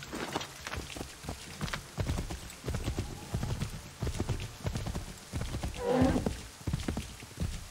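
A horse gallops with heavy, rhythmic hoofbeats.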